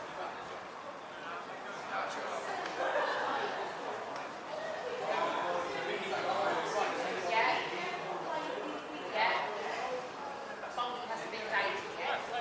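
Adults on the sideline talk and call out nearby.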